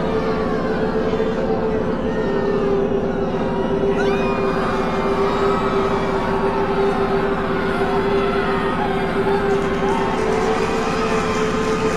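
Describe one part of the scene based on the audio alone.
A woman sings a long, held note, heard through loudspeakers in a large hall.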